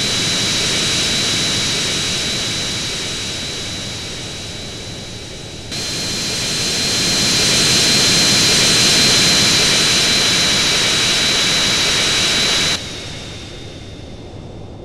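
Jet engines roar steadily with a high whine, growing louder as the airliner passes close.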